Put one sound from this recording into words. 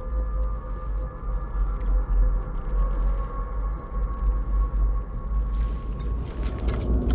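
A metal lever clanks as it is pulled down.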